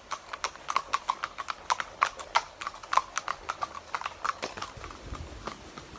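Horse hooves clop on a paved road at a quick walk.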